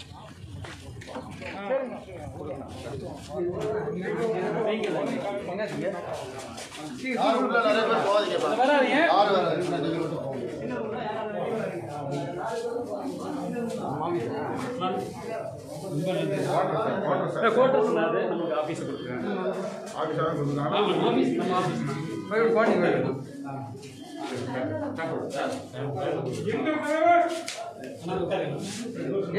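A crowd of men talk over one another loudly and close by.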